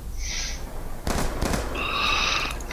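A rifle fires a short burst of loud shots.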